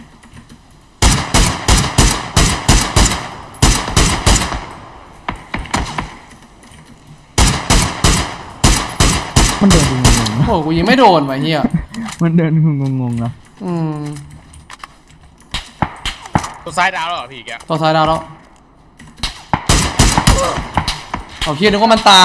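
Rapid rifle shots fire in quick bursts.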